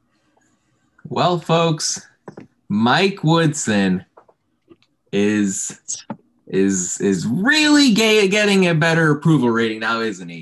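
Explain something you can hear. A man talks casually over an online call.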